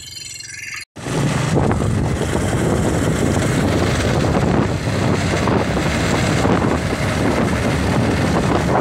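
Wind rushes loudly past as a motorcycle rides along a road.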